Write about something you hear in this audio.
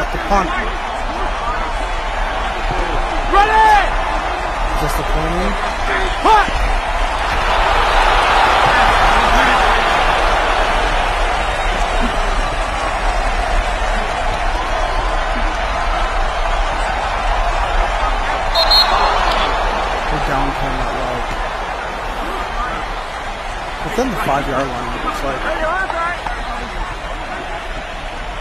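A large stadium crowd roars steadily, swelling louder for a while.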